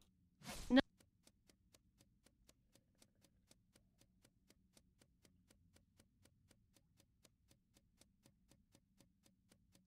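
Light footsteps tap at a quick, steady pace.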